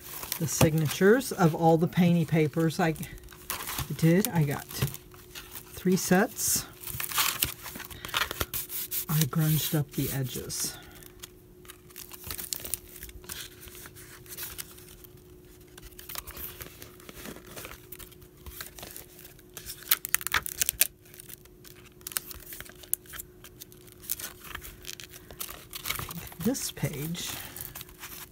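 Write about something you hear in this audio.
Stiff paper pages rustle and flap as they are turned by hand.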